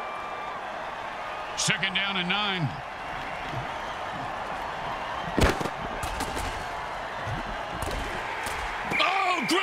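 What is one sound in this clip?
Armoured players crash into each other with heavy thuds.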